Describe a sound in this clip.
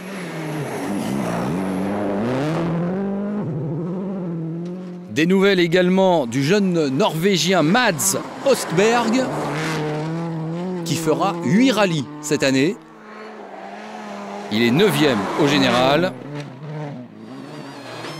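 A rally car engine roars at high revs, rising and falling sharply as gears shift.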